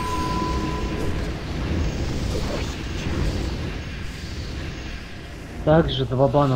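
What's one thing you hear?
Magic blasts roar and crackle in a game battle.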